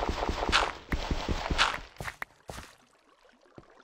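Dirt crunches rapidly as it is dug away.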